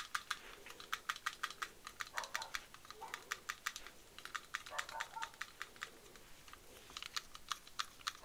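Fingers tap and scratch rapidly on a soft plastic object right next to a microphone.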